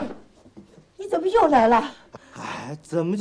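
An elderly woman asks a question in a soft voice.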